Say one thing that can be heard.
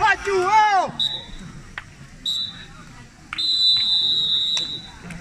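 A referee's whistle blows in short and long blasts.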